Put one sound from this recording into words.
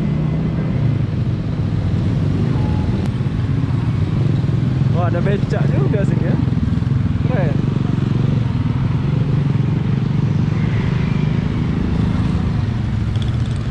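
A motorbike engine hums steadily up close.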